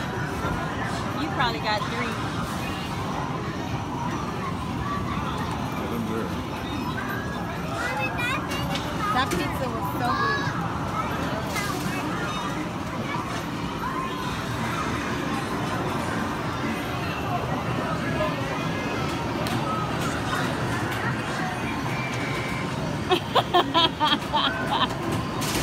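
Arcade machines beep and play music.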